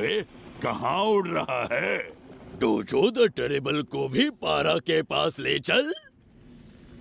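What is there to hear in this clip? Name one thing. A man speaks with animation.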